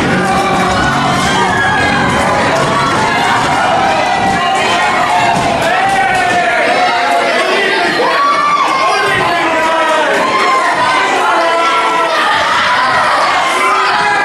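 Bodies thud onto a wrestling ring mat.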